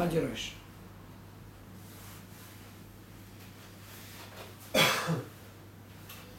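An elderly man speaks calmly in short bursts, close to a microphone.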